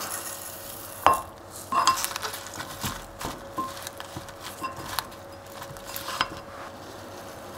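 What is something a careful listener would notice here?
A spoon and chopsticks toss food in a glass bowl with soft clinks.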